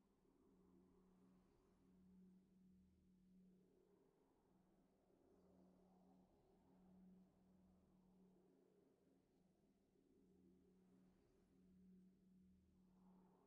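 Faint, low music with a repeating, humming tone plays.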